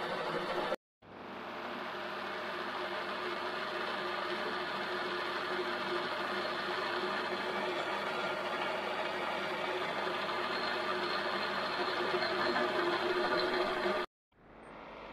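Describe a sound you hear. A metal lathe hums and whirs steadily.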